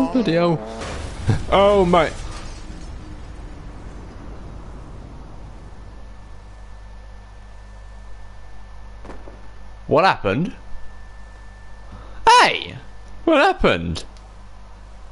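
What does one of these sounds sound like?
A young man speaks with animation into a microphone, close by, in short bursts.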